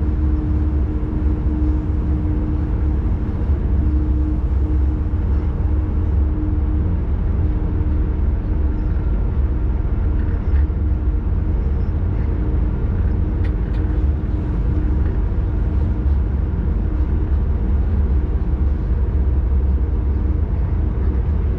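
A train rumbles steadily along the rails with a low, constant drone.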